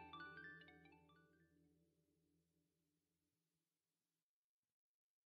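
Electronic game music plays with a bright melody and fades away.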